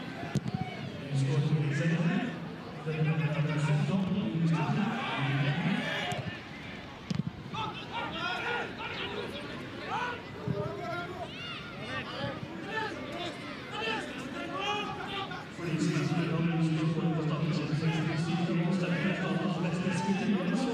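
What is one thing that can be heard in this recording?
A large crowd chants loudly outdoors.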